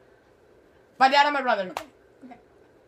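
A teenage girl laughs loudly close by.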